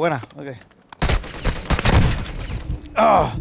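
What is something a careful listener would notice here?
Rapid gunfire rattles in short bursts.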